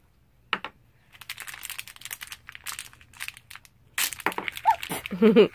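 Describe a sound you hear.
Plastic wrapping crinkles and rustles in small hands.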